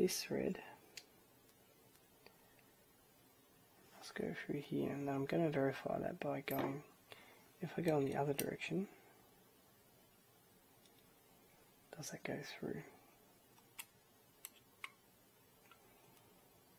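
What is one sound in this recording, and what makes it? Small plastic parts click and tap as they are fitted together by hand.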